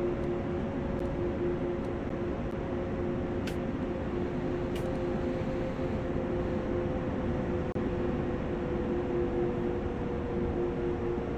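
A train's electric motor hums steadily.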